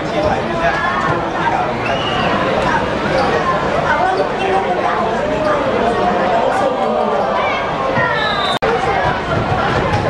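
A crowd of spectators chatters and shouts in a large echoing hall.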